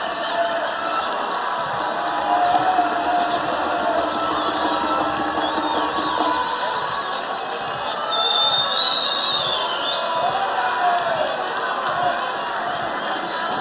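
Men clap their hands.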